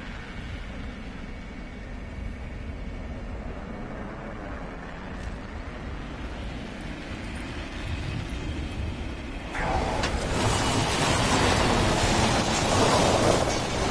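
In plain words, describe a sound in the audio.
Wind rushes past steadily, then grows much louder.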